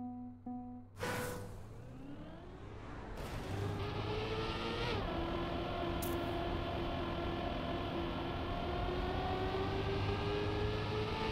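A racing car engine roars and rises in pitch as the car speeds up.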